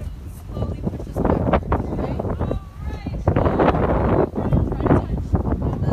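A mixed group of young people and adults chatter outdoors.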